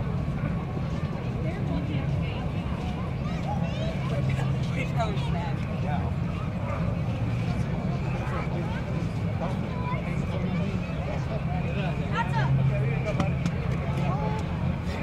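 A crowd of people chatters and calls out at a distance outdoors.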